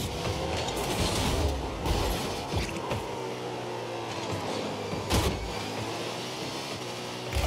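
A game car's engine hums and boosts steadily.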